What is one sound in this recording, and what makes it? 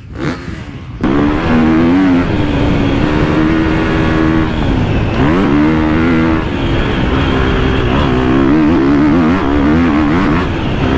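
A motocross bike engine roars loudly up close as it climbs a dirt track.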